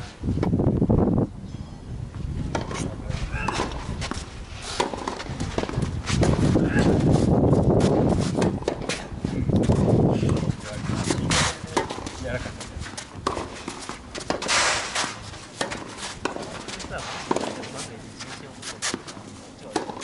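A tennis ball is struck with a racket, back and forth.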